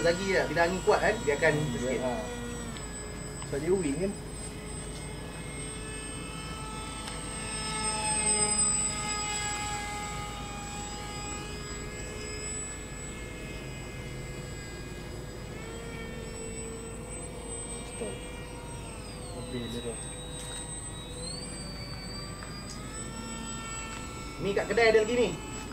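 A model plane's motor whines high overhead, rising and falling in pitch as it swoops past.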